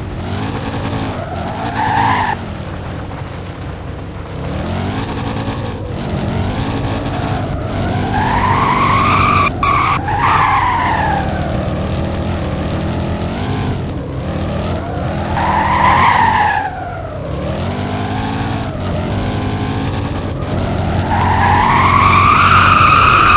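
A car engine revs up and down repeatedly as it speeds along.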